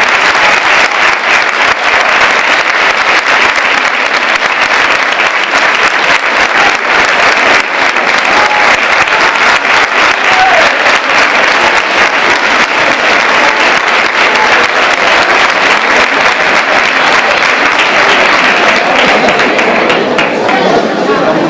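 A large audience applauds loudly in an echoing hall.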